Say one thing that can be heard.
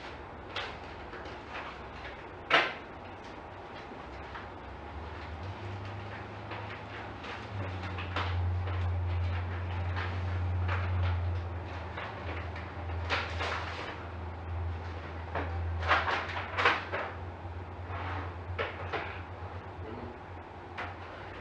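A man speaks calmly at a distance in a room with a slight echo.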